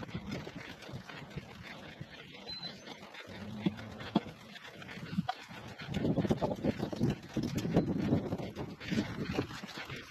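A wheelbarrow rolls across grass.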